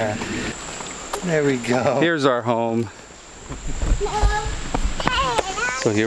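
Footsteps patter on a paved path.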